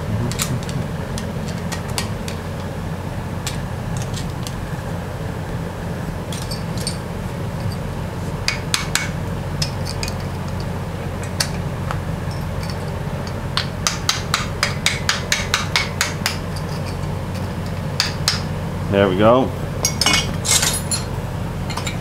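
Metal tools clink and tap against a metal fitting.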